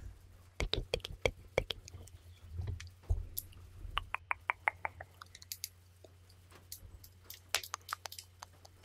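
Fingernails tap and click close to a microphone.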